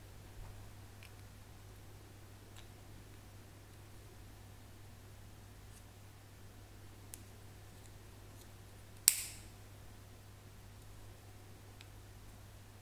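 Plastic parts click and snap together.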